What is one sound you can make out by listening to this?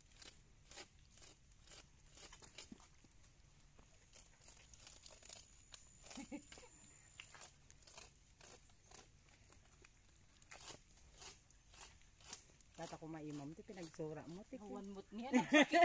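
Roots tear and rustle as they are pulled from moss.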